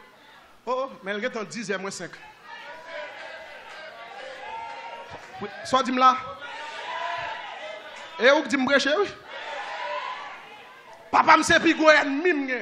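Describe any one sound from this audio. A man preaches passionately into a microphone, his voice carried by loudspeakers in an echoing hall.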